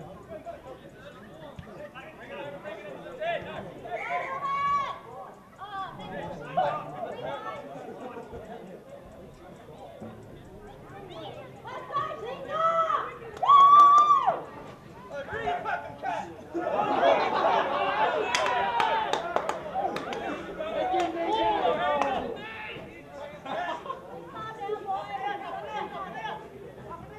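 Men's voices shout loudly outdoors.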